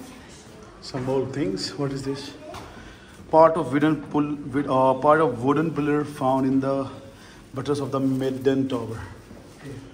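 A man speaks calmly nearby in an echoing stone room.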